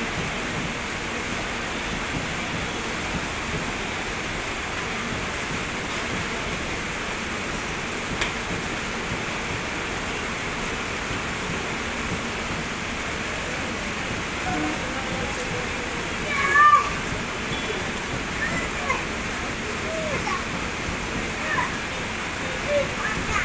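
A passenger train rumbles steadily past.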